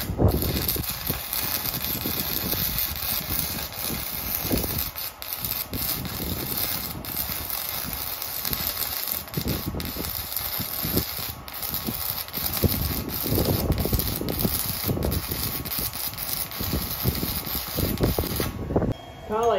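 An arc welder crackles and sizzles steadily up close.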